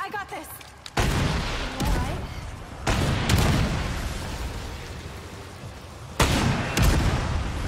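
A gun fires several loud, booming shots that echo.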